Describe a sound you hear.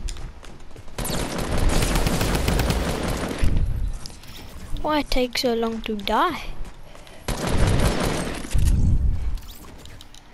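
Gunshots fire in rapid bursts, close by.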